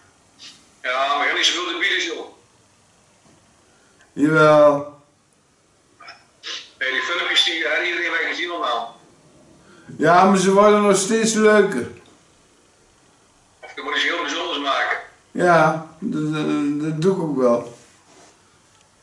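A middle-aged man speaks up close in short bursts.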